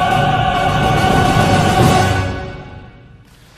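An orchestra and choir finish a piece with a loud final chord.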